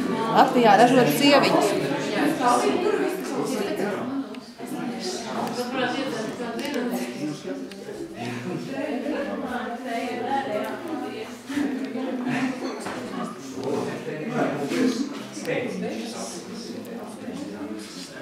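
An accordion plays a lively tune up close.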